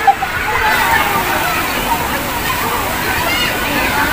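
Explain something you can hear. Children shout and squeal in the water.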